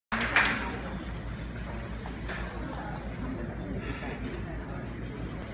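People murmur quietly in a large echoing hall.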